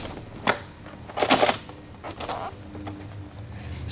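A motorcycle seat scrapes and thumps as it is lifted off.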